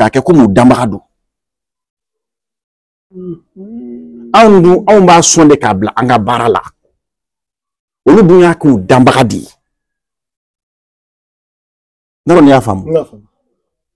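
A middle-aged man speaks with animation close by, in bursts with pauses.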